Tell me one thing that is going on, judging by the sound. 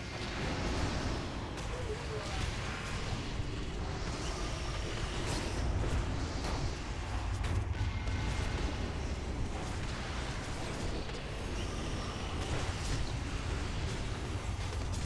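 Fantasy battle sound effects clash and burst with spell impacts.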